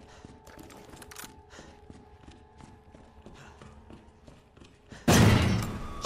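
Footsteps thud along a hard floor.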